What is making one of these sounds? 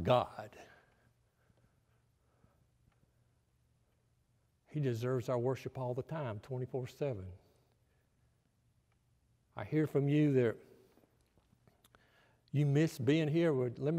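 An elderly man speaks calmly through a microphone, in phrases with long pauses.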